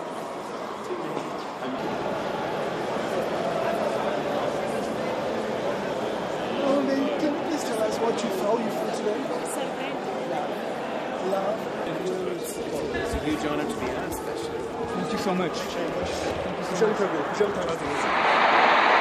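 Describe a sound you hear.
A crowd of people chatters in a busy echoing hall.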